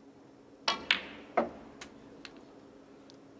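Snooker balls knock together with crisp clacks.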